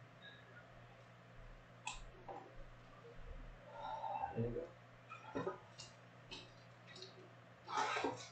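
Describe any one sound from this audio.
Cards clack and rustle as they are handled.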